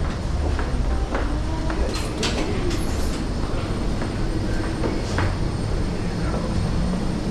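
Footsteps clatter on a metal walkway floor.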